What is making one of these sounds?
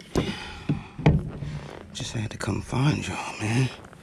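A fish flaps and thrashes against a rubber net.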